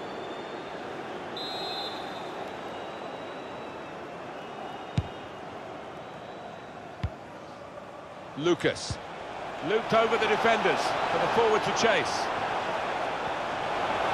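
A large crowd murmurs steadily in a big stadium.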